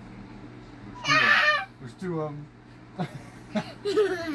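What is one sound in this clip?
A young child laughs and shrieks.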